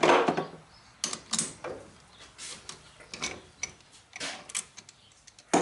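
A chuck key clinks and clicks in a lathe chuck.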